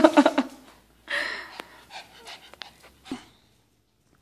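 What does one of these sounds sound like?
A small dog huffs and snorts close by.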